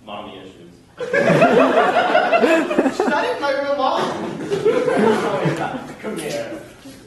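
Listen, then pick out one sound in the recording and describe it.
An audience laughs loudly.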